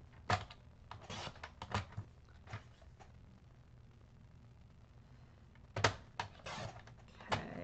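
Paper slides and rustles across a hard surface.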